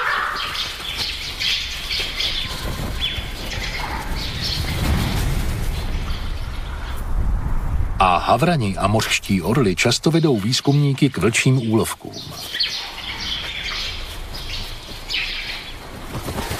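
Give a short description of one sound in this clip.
Crows caw harshly.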